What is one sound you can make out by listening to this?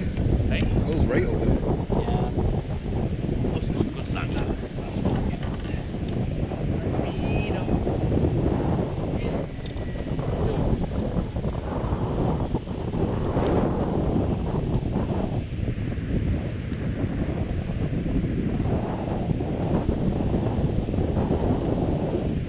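Strong wind buffets a microphone outdoors.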